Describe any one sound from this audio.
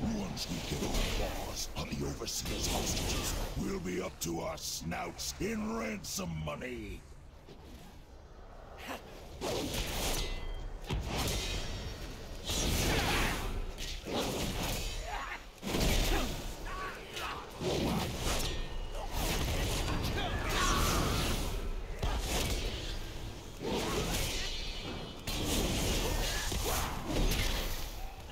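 Magic spells crackle and boom amid clashing weapons.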